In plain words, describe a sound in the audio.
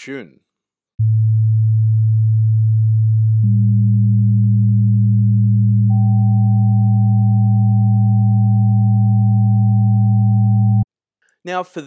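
A low steady tone plays.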